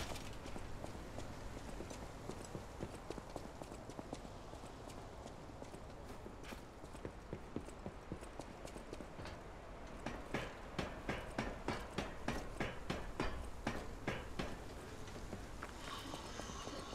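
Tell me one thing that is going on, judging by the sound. Footsteps patter on rough ground.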